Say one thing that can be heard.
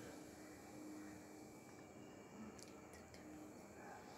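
Liquid pours into a glass.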